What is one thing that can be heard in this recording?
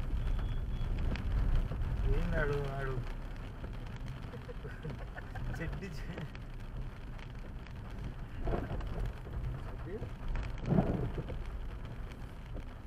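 A car engine hums steadily inside the car while driving.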